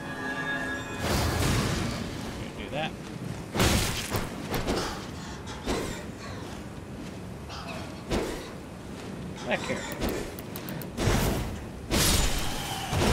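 A sword swings and strikes with sharp clashes.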